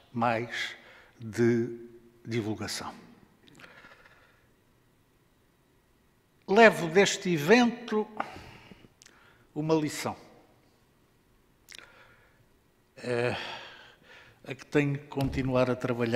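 An elderly man speaks calmly into a microphone, with pauses, in an echoing hall.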